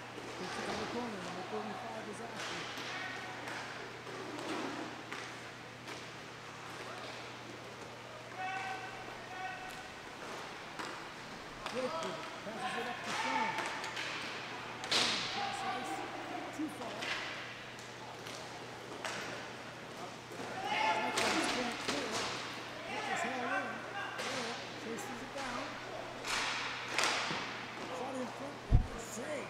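Skate wheels roll and scrape across a hard rink floor.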